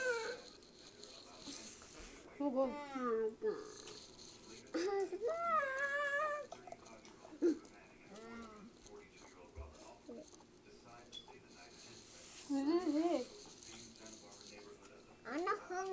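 A young woman chews food noisily.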